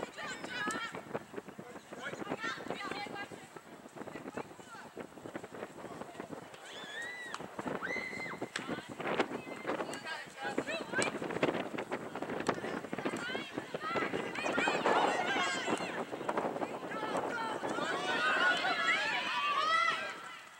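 Young women and spectators shout and call out outdoors, growing louder toward the end.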